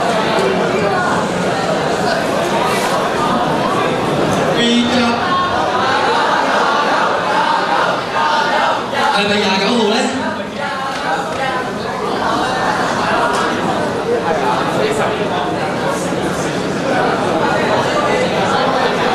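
A crowd chatters and murmurs loudly in a large echoing hall.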